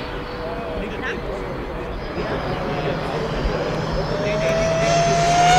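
A small aircraft engine drones in the distance, slowly growing louder.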